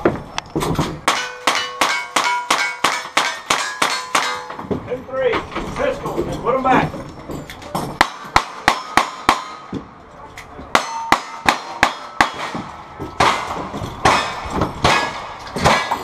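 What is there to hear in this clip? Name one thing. Gunshots fire rapidly in quick bursts.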